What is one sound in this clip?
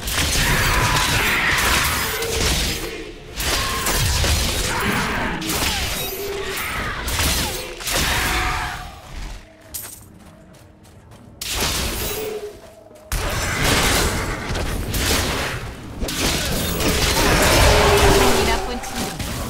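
Heavy blows and magic blasts crash in a fierce fight.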